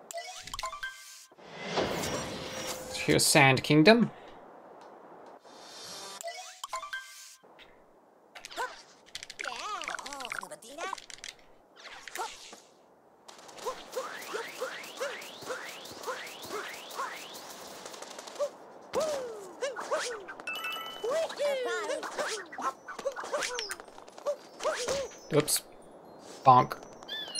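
Video game sound effects chime, whoosh and jingle.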